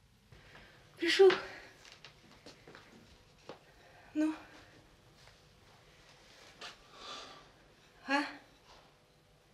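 A middle-aged woman speaks cheerfully nearby.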